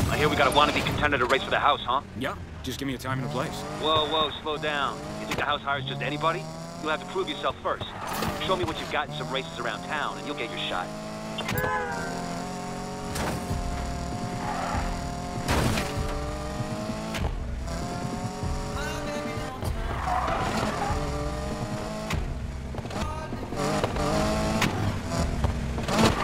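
A sports car engine revs and roars as the car accelerates and shifts gears.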